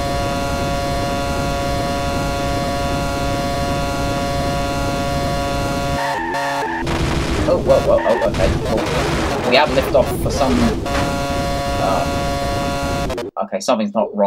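A racing car engine whines at a steady high pitch.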